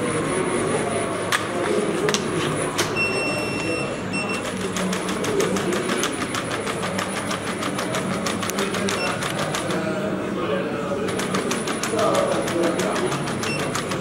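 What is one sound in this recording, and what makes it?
A robot dog's motors whir as it gets up and walks.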